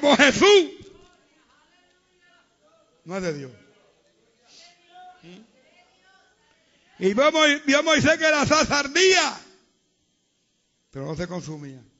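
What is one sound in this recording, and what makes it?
An elderly man preaches with animation, loudly, through a microphone.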